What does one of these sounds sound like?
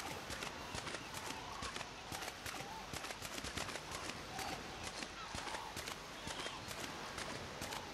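Footsteps crunch on rocky ground at a steady walking pace.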